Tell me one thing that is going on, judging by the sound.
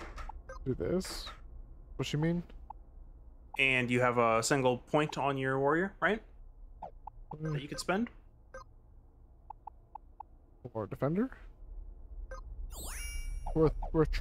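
Short electronic menu blips click now and then.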